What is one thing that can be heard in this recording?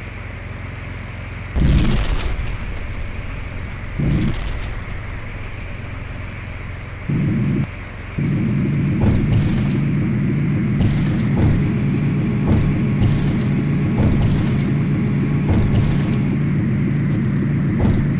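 A propeller aircraft engine drones steadily, growing louder partway through.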